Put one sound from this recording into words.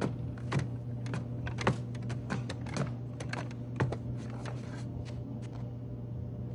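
Footsteps knock on wooden ladder rungs.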